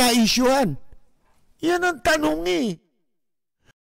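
A middle-aged man speaks with animation into a close microphone.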